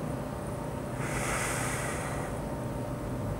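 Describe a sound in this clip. A man breathes out slowly and deeply.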